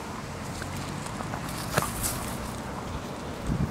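A puppy's paws rustle through dry grass as it runs.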